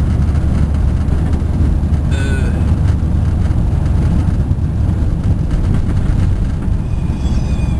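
A car engine hums steadily from inside the car as it drives along a road.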